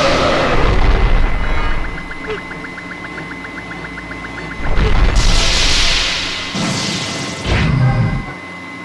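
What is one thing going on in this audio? Explosions boom and crackle loudly.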